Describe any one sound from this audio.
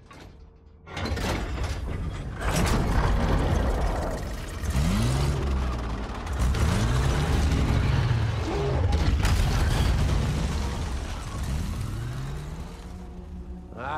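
Explosions boom and rumble heavily.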